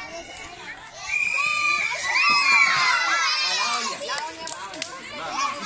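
Children shout and cheer loudly.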